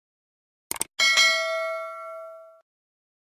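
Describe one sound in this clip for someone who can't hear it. A small bell rings and fades.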